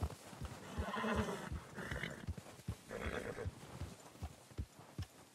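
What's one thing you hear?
A horse gallops through snow, its hooves thudding in a quick beat.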